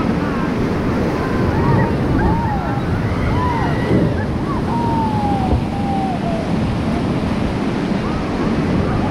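White-water rapids roar and churn steadily, close by.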